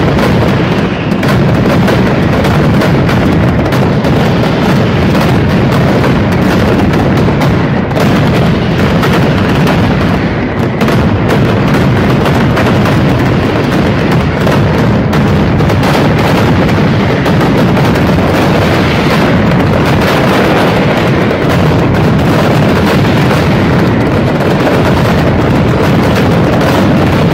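Firecrackers explode in a dense, deafening barrage close by.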